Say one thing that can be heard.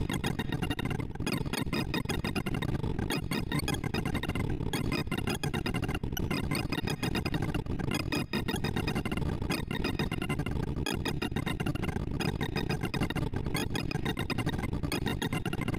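Rapid electronic beeps chirp continuously at shifting pitches.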